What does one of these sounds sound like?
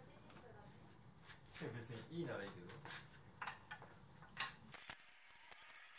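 Wooden folding furniture clatters and knocks as it is set down.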